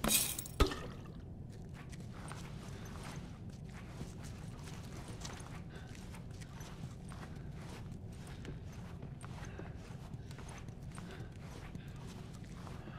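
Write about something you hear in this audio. Soft footsteps creep across a hard floor.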